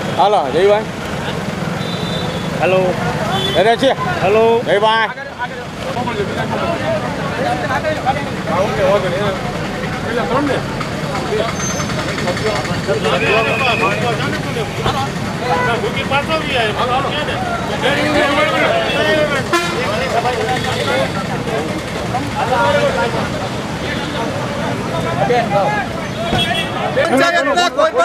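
A crowd of men and women talks and shouts excitedly nearby, outdoors.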